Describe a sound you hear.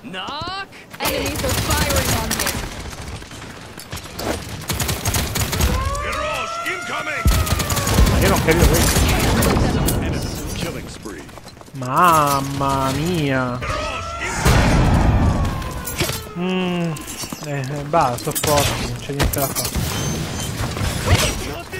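Video game gunfire and energy blasts crackle loudly.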